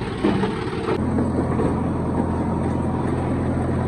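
A heavy diesel engine drones steadily from inside a cab.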